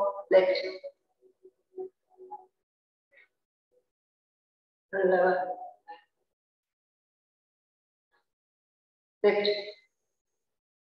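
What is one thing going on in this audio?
A woman gives short spoken instructions in bursts, close to a microphone.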